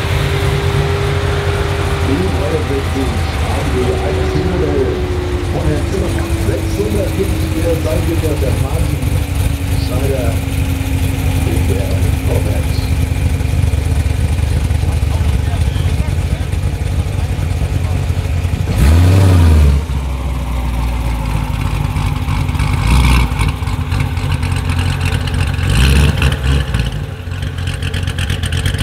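A sports car engine idles with a deep, rumbling burble.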